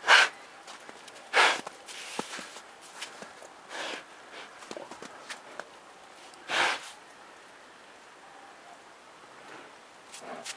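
Snow crunches under a bear's digging paws and snout.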